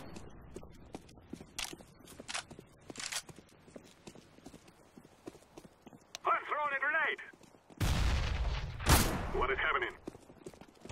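Footsteps thud quickly on hard ground.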